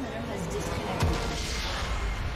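A massive structure explodes with a deep boom.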